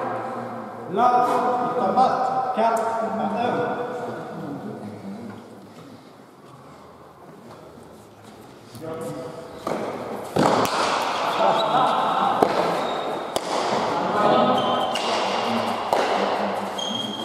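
Men call out and cheer, echoing in a large hall.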